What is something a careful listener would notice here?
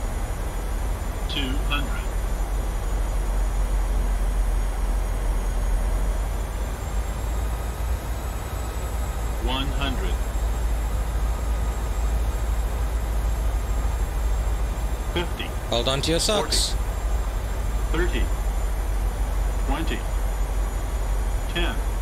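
Wind rushes past an airliner's cockpit.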